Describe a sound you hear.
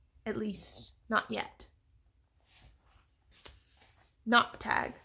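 Book pages rustle and flip.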